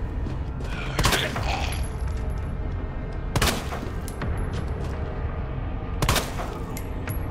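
Gunshots bang loudly, echoing.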